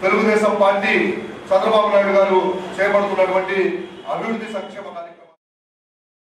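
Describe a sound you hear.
A young man speaks forcefully into a microphone.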